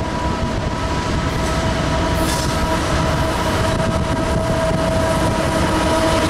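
A diesel-electric freight locomotive rumbles past, pulling a train.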